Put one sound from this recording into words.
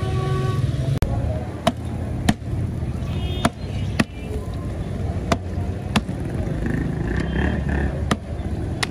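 Hands slap and pat dough on a metal surface.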